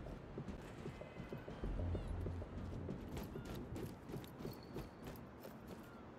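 Footsteps thud steadily on metal and snow.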